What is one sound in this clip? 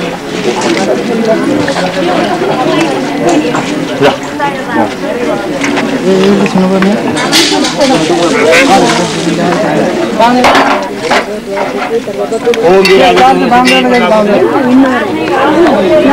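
A crowd of men and women talk and murmur all around outdoors.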